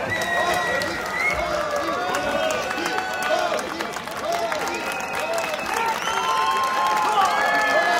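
A group of men cheer and shout loudly.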